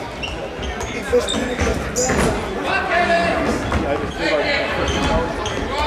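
A ball thuds on a wooden floor.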